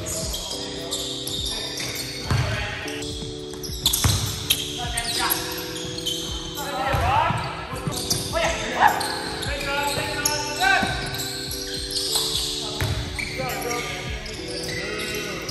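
Young men call out to each other across a large echoing gym.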